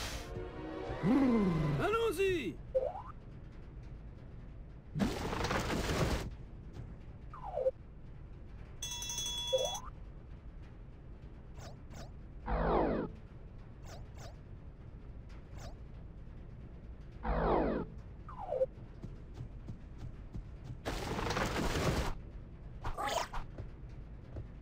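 Video game sound effects whoosh and chirp in short bursts.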